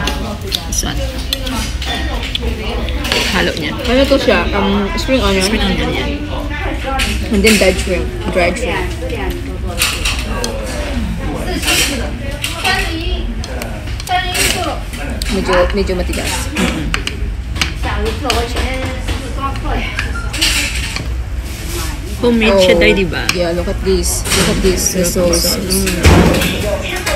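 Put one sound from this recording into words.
Chopsticks click against a plate while noodles are stirred.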